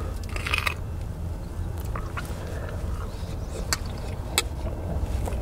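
A fork clicks on a plate.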